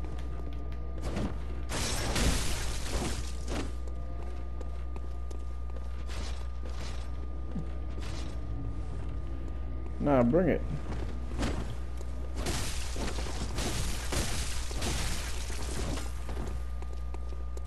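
A blade slashes and strikes in a fight.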